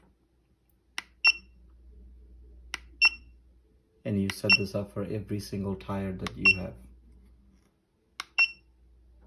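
Plastic buttons click as they are pressed.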